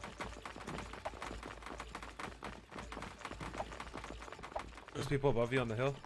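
Footsteps patter quickly on a hard surface.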